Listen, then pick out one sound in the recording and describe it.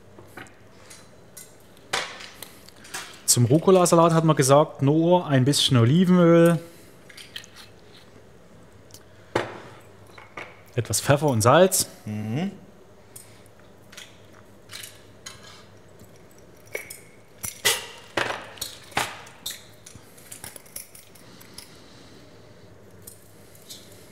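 Metal utensils clink against a pan.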